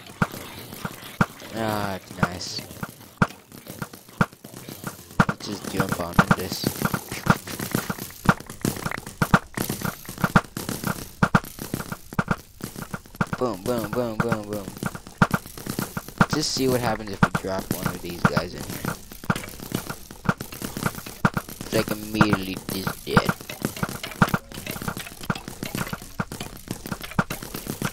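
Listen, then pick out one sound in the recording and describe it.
Fire crackles steadily.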